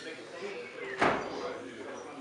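A door closes with a thud.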